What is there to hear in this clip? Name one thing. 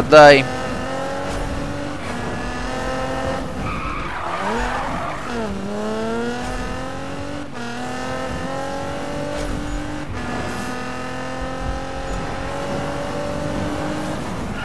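A sports car engine roars and revs up through the gears.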